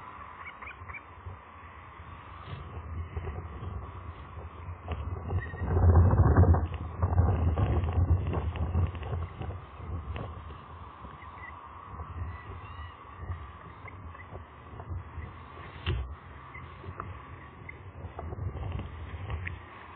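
A large bird flaps its wings loudly at close range.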